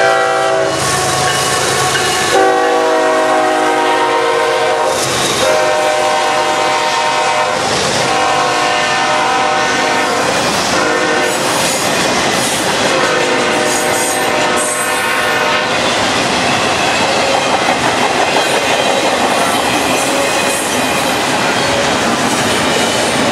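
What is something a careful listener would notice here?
Freight car wheels clatter and rumble steadily over the rails.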